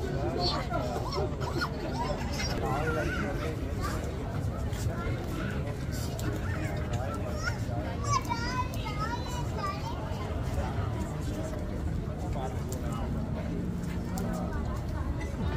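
A crowd chatters outdoors nearby.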